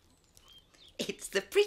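A woman speaks with dismay close by.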